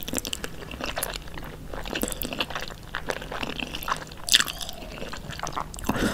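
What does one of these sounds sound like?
A person slurps and chews noodles loudly, close to the microphone.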